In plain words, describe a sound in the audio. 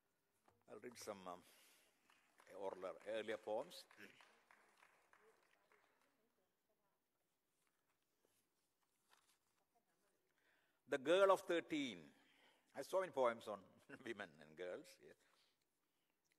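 An elderly man reads out slowly and expressively through a microphone, with long pauses, in a reverberant hall.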